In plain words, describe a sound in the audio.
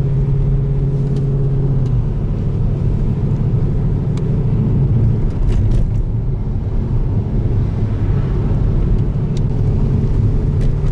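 Tyres roll along the road surface with a low rumble.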